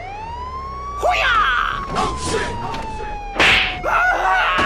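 A car thumps over speed bumps.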